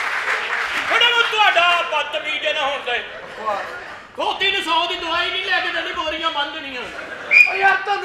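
A man speaks loudly and animatedly in a reverberant hall.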